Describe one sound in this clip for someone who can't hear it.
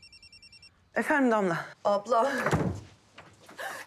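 A young woman speaks quietly into a phone.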